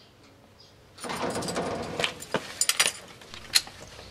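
A metal door rattles as it is worked open.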